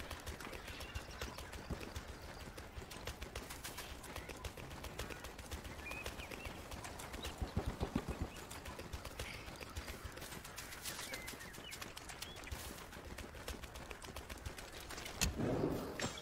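Quick footsteps run over leaves and stony ground.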